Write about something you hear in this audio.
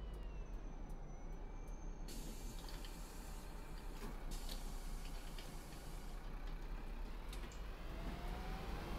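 A bus engine idles with a low rumble.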